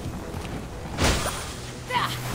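A sword strikes a glowing object with a sharp, ringing impact.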